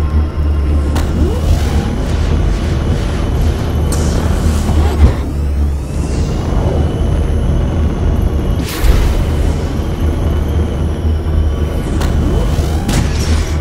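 Whooshes sweep past as the craft speeds through the track.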